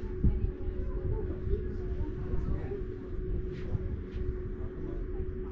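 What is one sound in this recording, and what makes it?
Distant people chatter quietly.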